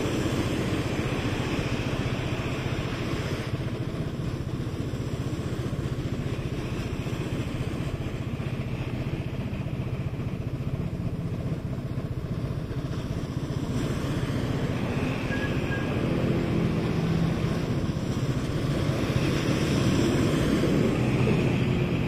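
Car tyres hiss past on a wet road.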